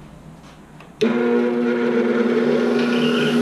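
A bench grinder whirs steadily.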